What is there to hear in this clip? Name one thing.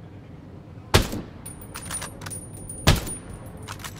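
A rifle fires loud single shots.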